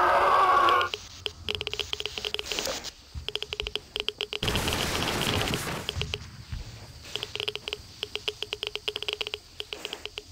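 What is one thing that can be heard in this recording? Footsteps crunch on gravel and dirt at a steady walking pace.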